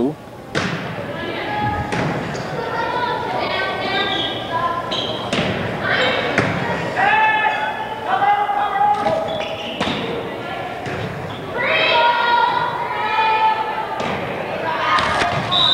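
Young women players call out and shout to each other.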